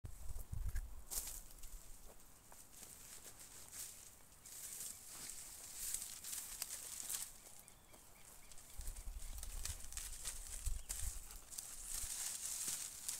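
Dry grass rustles and crackles close by.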